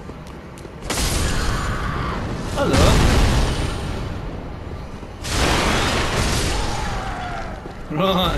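A sword swings and strikes in a fight.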